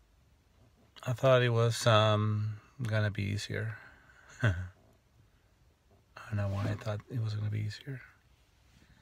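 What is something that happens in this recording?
A middle-aged man speaks close up, calmly, in short bursts with pauses.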